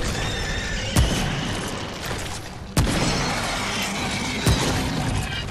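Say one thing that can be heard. A gun fires single loud shots.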